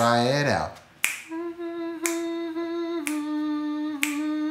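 A young man snaps his fingers in a steady beat.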